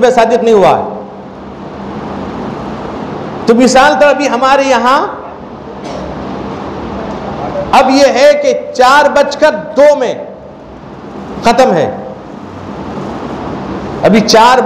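A man chants a sermon with a melodic voice into a microphone, heard through a loudspeaker, in phrases with pauses.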